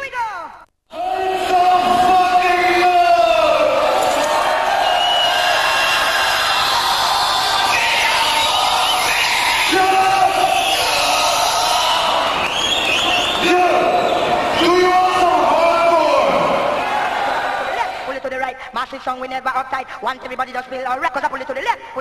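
Loud electronic dance music with a pounding beat plays.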